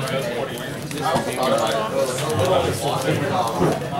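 Playing cards tap softly onto a play mat.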